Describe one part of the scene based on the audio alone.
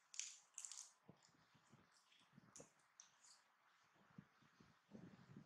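A monkey crunches crisp cabbage leaves.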